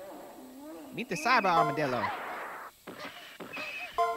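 A young woman cries out.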